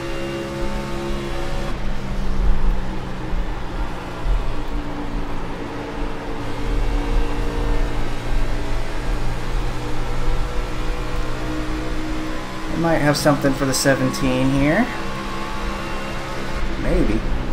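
Other race car engines drone close by, rising and falling in pitch.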